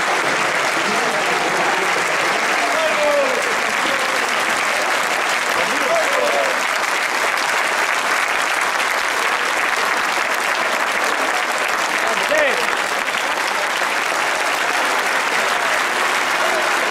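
A large crowd cheers and applauds loudly throughout.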